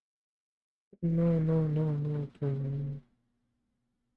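A young man makes a short, drawn-out sound with his voice, close to a microphone.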